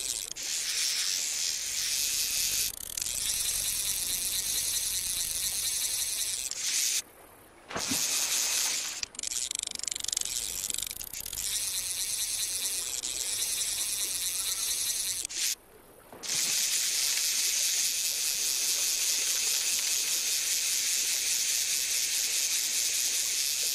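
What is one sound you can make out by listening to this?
A fishing reel whirs steadily as line is wound in.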